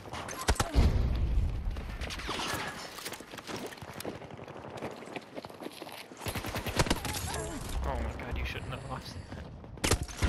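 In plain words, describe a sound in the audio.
Gunfire cracks in short bursts nearby.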